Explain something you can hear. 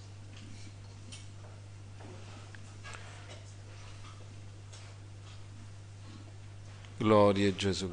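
A middle-aged man reads aloud calmly through a microphone.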